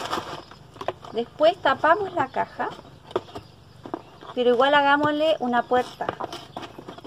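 A middle-aged woman speaks calmly, close by.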